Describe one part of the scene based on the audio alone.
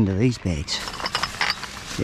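Plastic bottles clatter against each other.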